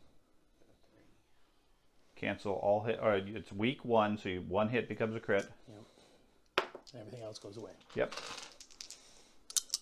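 Dice clatter as they are rolled onto a felt tray.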